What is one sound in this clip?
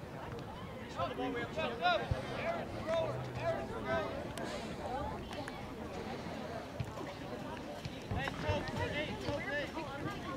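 Young men shout and call to each other across an open playing field.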